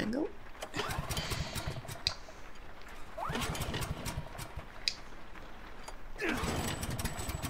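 A pull cord is yanked hard, with a rising whir, several times.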